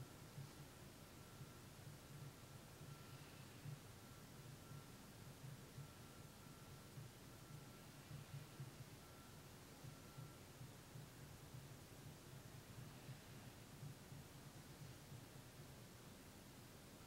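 A man speaks softly in a low voice close by.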